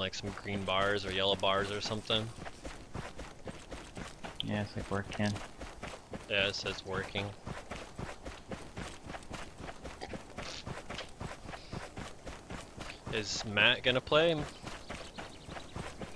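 Footsteps run quickly through grass.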